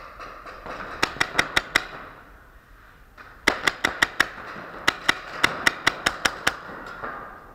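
Paintball markers fire in rapid bursts of sharp pops in a large echoing hall.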